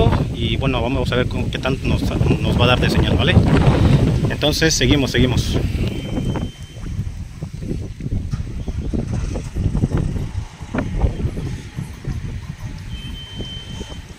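Wind blows outdoors, rumbling and gusting against the microphone.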